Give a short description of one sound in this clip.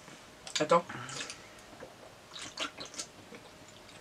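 A teenage boy gulps a drink from a can.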